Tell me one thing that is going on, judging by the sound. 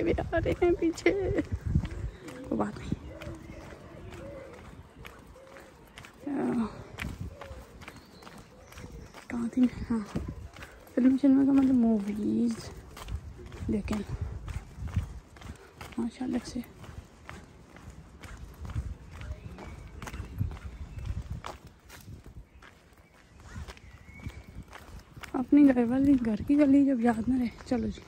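Footsteps tread steadily on a pavement outdoors.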